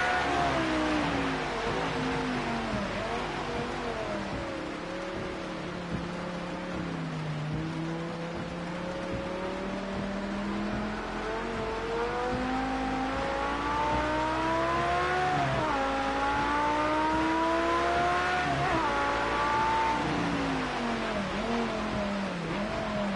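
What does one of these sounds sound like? A racing car engine roars, its pitch rising and falling with gear changes.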